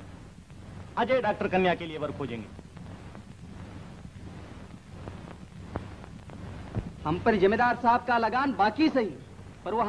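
A woman speaks with feeling, heard through an old, hissy recording.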